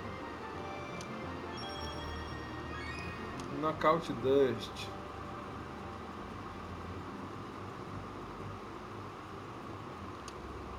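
Light video game music plays throughout.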